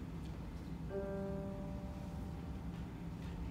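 A piano plays a few notes.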